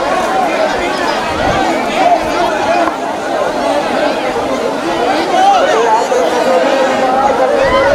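A large outdoor crowd of men chatters and shouts all around.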